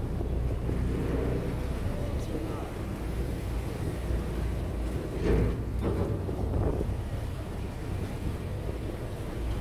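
Waves slosh and splash on the open sea.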